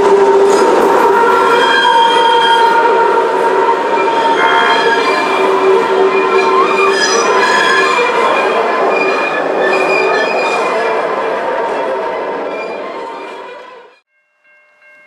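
A train's wheels screech and squeal loudly on the rails.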